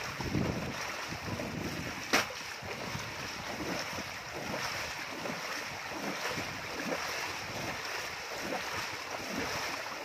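Water rushes and splashes steadily close by.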